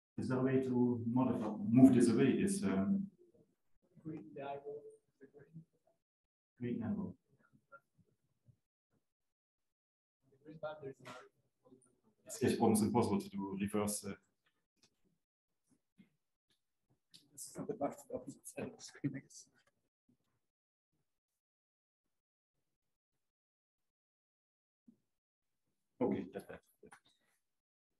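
A man speaks calmly into a microphone, pausing often.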